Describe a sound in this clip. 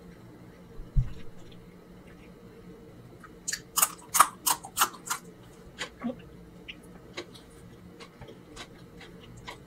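Wet eating and chewing sounds come up close.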